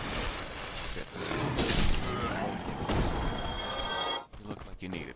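A sword strikes an armored enemy with a heavy impact.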